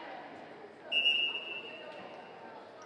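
A referee's whistle blows once, short and shrill.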